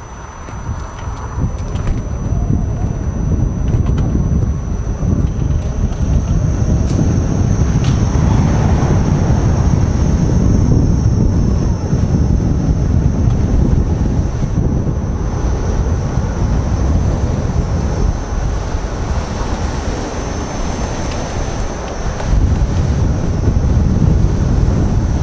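Wind buffets the microphone while riding outdoors.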